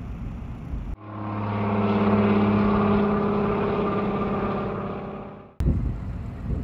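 A seaplane's propeller engine drones steadily across the water.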